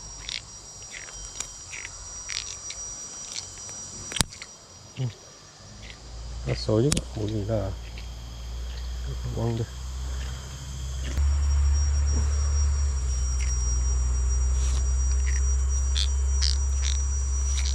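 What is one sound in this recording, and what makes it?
A fish thrashes and flaps in a man's hand.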